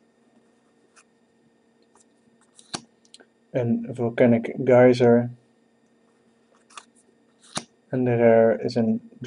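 Stiff playing cards softly slide and tap against each other in hand.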